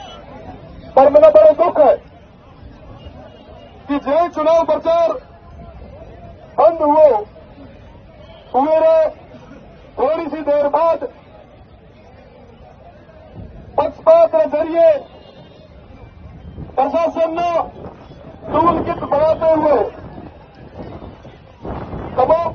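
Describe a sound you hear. A man shouts to a crowd in short, loud bursts.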